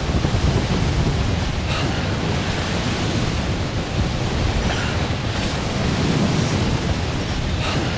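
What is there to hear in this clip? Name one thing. Strong wind roars steadily through a snowstorm.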